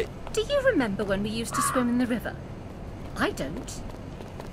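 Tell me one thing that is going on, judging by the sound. A woman speaks in a bright, playful voice.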